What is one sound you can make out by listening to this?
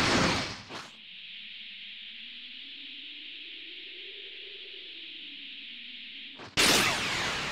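An energy aura crackles and hums steadily.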